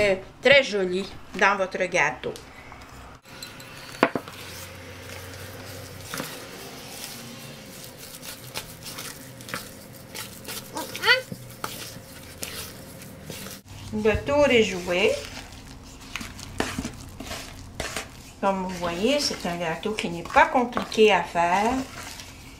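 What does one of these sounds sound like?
A wooden spoon stirs and scrapes thick batter in a plastic bowl.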